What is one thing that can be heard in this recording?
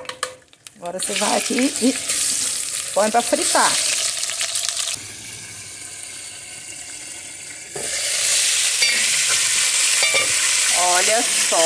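A fish sizzles loudly as it fries in hot oil.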